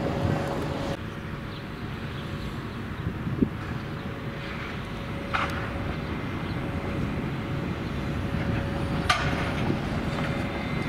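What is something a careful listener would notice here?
A tram rumbles along the rails, approaching.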